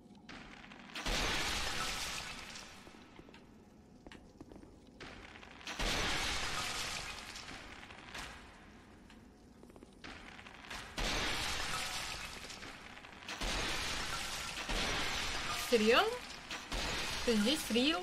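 Weapons swish and thud in loud bursts of game combat.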